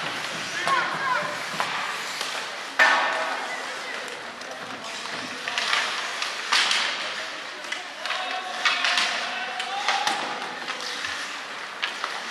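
Hockey sticks clack against a puck with sharp knocks, echoing in a large hall.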